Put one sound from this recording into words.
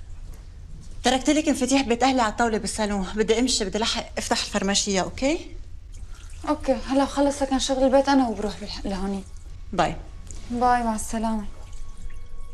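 A woman speaks close by, in a tense, pointed voice.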